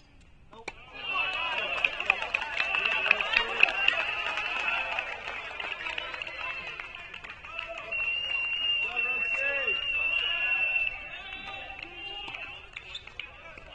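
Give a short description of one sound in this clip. A crowd cheers and shouts from a distance.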